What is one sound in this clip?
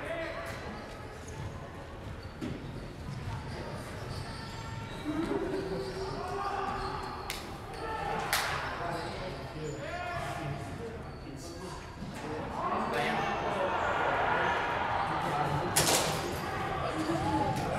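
Men talk nearby in a large, echoing hall.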